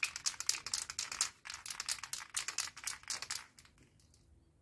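A spray can hisses in short, quick bursts close by.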